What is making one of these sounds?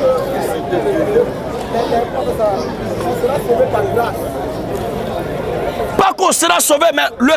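A young man speaks loudly and with animation to a crowd outdoors.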